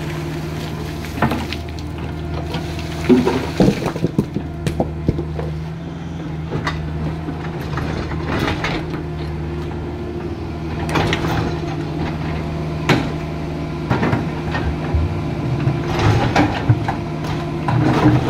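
A diesel excavator engine rumbles steadily nearby.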